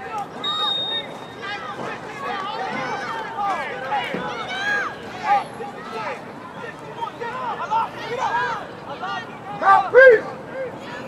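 A crowd of children shout and cheer excitedly outdoors.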